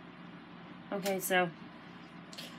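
A young woman speaks a few words briefly, close by.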